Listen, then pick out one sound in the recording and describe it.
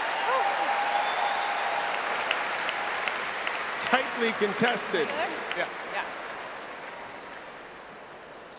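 A large crowd cheers and chatters in a big open arena, then quiets down.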